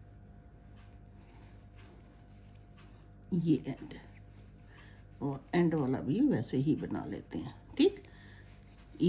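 Knitting needles tap and click softly.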